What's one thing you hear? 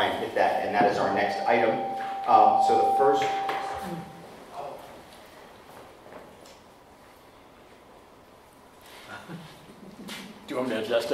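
A man speaks close to the microphone in a room with some echo.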